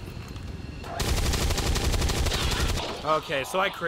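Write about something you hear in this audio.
A machine gun fires a rapid, loud burst.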